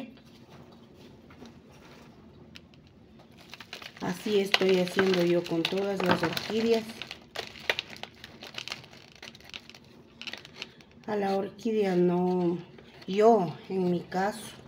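Plastic crinkles as hands handle a pot.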